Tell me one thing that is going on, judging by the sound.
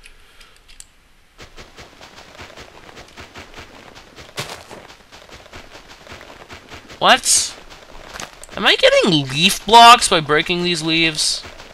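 Water swishes softly as a swimmer moves underwater.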